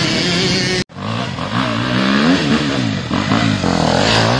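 A second dirt bike engine approaches, revving up and down.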